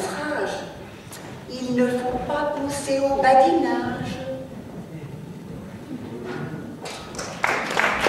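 An elderly woman speaks with animation through a microphone in a large hall.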